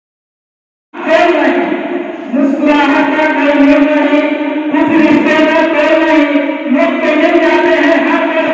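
A man sings into a microphone, heard through loudspeakers.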